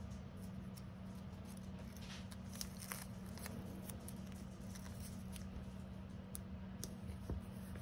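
Fingers peel and handle crinkly plastic packaging close by.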